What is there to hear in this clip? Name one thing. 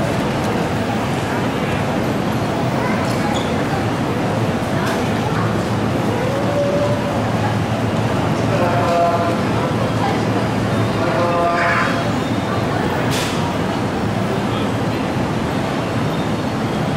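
A crowd murmurs nearby.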